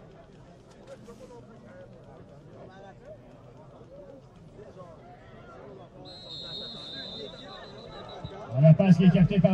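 Players and spectators chatter faintly outdoors.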